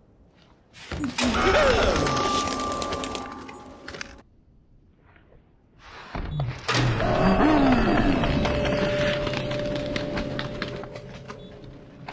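A young man shouts in alarm into a close microphone.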